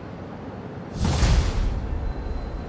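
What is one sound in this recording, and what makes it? A heavy thud sounds as a figure lands on a rooftop.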